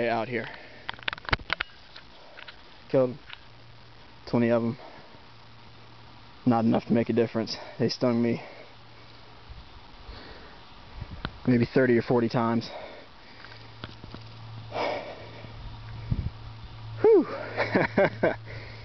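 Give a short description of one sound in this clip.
A man speaks in short bursts close to the microphone, with pauses between phrases.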